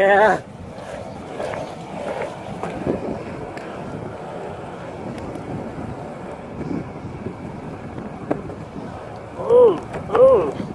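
Bike tyres roll steadily over rough asphalt.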